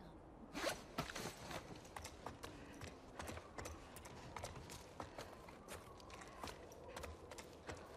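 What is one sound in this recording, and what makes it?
Footsteps crunch on snow and creak on wooden boards.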